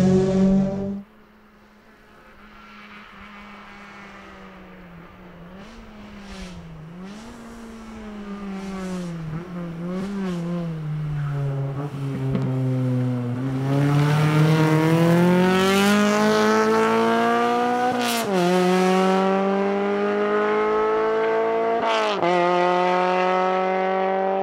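A rally car engine roars closer, revving hard and rising and falling in pitch as it shifts gears.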